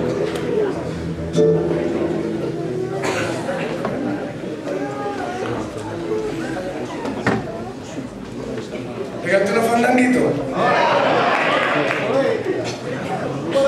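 An acoustic guitar is strummed and plucked.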